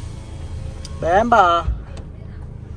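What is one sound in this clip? A woman calls out briefly from outside, at a short distance.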